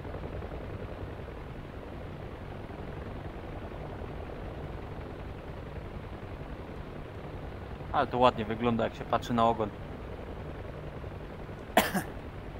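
A helicopter's engine and rotor drone steadily and low.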